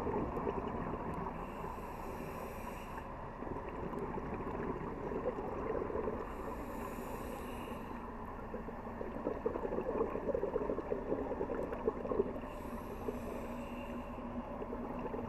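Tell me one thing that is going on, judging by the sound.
Water rumbles and crackles steadily underwater.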